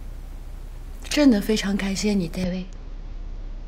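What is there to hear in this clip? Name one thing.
A young woman speaks softly and warmly nearby.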